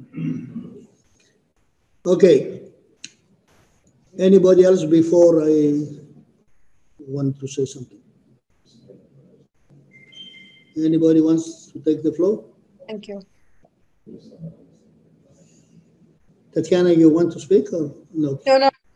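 An elderly man speaks with animation over an online call.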